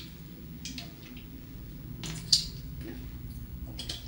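Liquid splashes from a bottle into a cupped hand.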